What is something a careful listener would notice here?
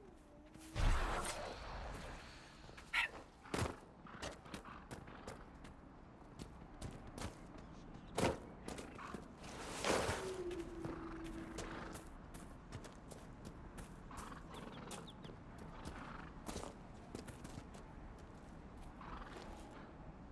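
Footsteps patter quickly over grass and rock.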